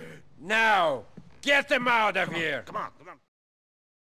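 A man speaks forcefully.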